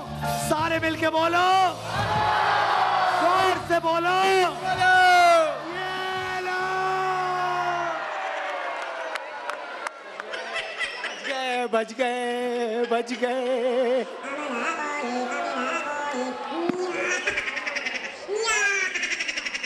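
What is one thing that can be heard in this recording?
A man shouts with animation through a microphone in a large echoing hall.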